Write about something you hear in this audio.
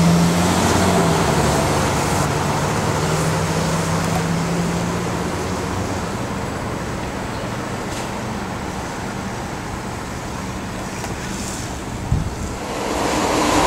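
An electric train hums and whirs steadily as it glides past.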